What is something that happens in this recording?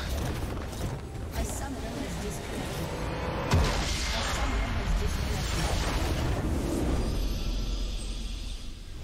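Magic blasts crackle and boom in a hectic fight.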